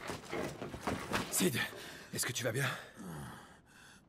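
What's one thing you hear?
A young man asks with concern, close by.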